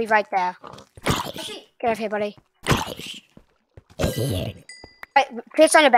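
An axe strikes a zombie with sharp thuds.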